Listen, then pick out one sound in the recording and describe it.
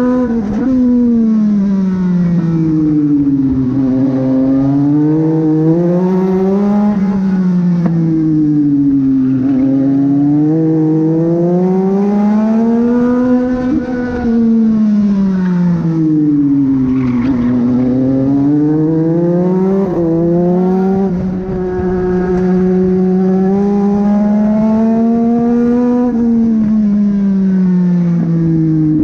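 A race car engine roars loudly from close by, rising and falling in pitch as it speeds up and slows for corners.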